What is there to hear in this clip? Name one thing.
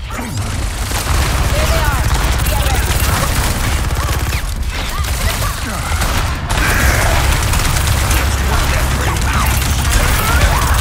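Guns fire rapidly in long rattling bursts.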